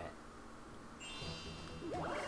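A bright electronic jingle chimes as a turn begins.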